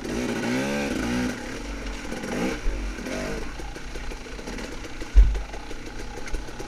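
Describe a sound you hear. A dirt bike engine revs up and down.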